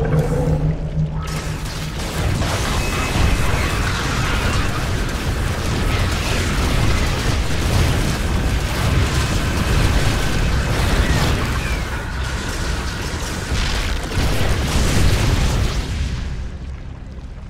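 Laser weapons fire rapidly in a loud, noisy battle.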